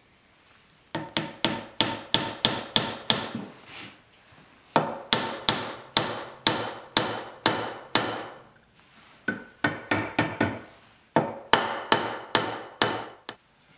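A wooden mallet taps sharply on a chisel in quick bursts of blows.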